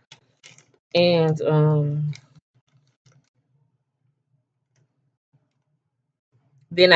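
A woman speaks close to a microphone in a drawn-out, sing-song way.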